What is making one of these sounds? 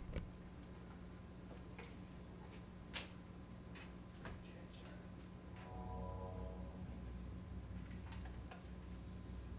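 Electronic music with a deep, droning bass plays through loudspeakers.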